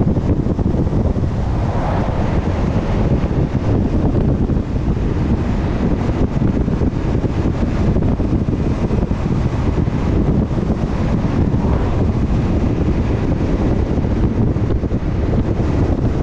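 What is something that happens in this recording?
A vehicle's tyres roar on the road.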